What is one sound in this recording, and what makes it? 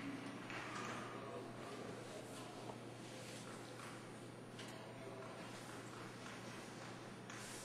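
Chalk scrapes and taps on a chalkboard.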